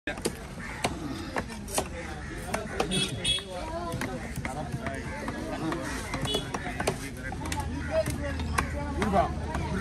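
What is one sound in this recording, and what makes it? A knife chops through fish on a wooden block with sharp thuds.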